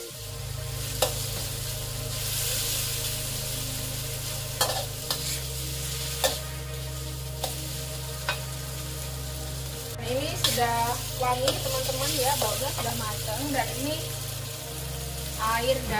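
A metal spatula scrapes and clacks against a wok.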